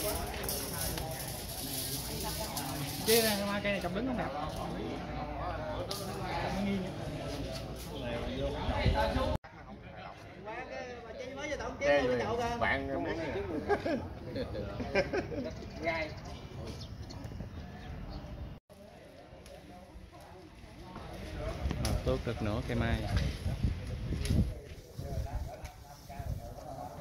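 Middle-aged men talk among themselves outdoors.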